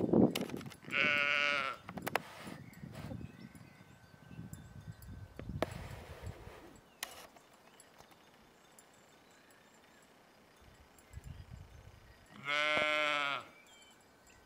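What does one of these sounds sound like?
A sheep bleats loudly close by.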